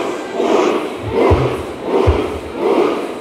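Drums thump heavily.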